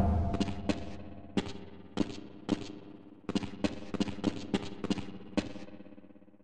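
Footsteps clank on a hard floor with a short echo.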